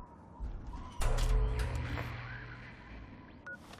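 A low electrical hum drones and then fades.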